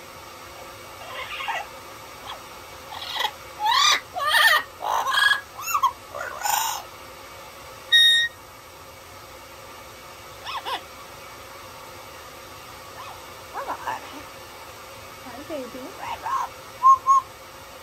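A parrot squawks and chatters close by.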